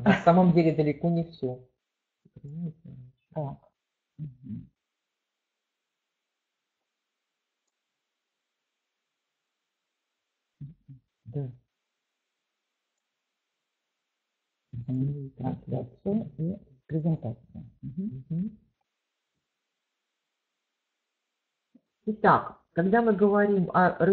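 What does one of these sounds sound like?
A middle-aged woman speaks calmly through an online call, with pauses.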